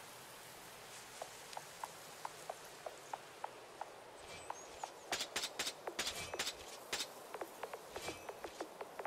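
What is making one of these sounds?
Quick light footsteps patter across the ground.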